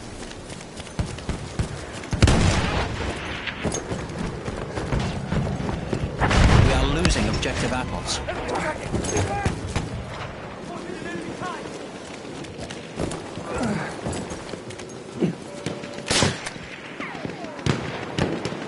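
Gunshots crack sharply now and then.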